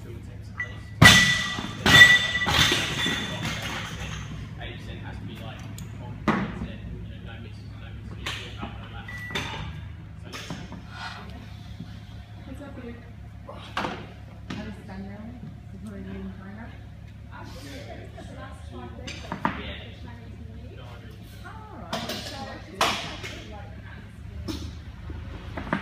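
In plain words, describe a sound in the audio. Barbell plates clang and rattle in a large echoing hall.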